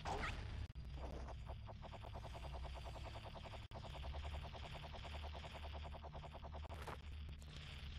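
A game character's spinning flower whirs steadily in flight.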